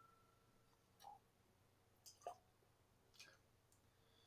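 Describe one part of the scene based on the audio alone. A glass clinks lightly.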